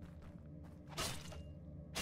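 A sharp slashing hit bursts out from a game.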